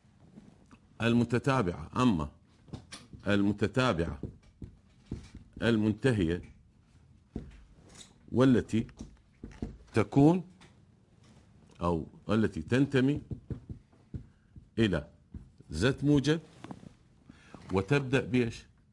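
A middle-aged man speaks calmly and clearly into a microphone, in short phrases with pauses.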